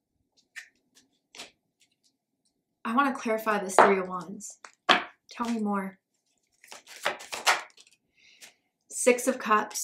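Cards shuffle and slide in a young woman's hands.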